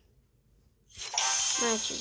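A short victory jingle plays.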